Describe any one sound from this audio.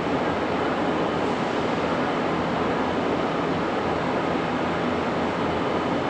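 Liquid splashes and churns.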